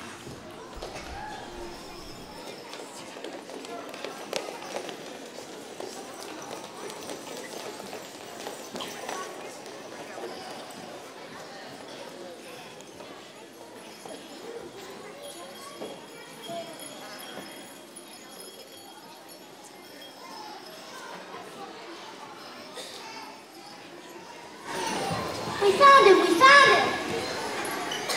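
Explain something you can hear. A crowd of children chatters softly in a large echoing hall.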